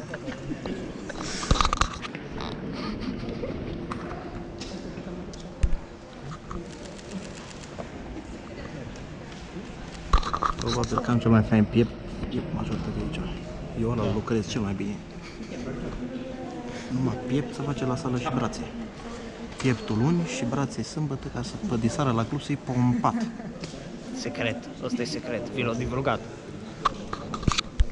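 A second young man laughs and talks close by.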